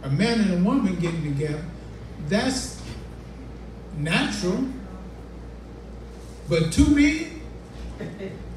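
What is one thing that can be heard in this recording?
A man speaks into a microphone through a loudspeaker in an echoing room, in short phrases with pauses.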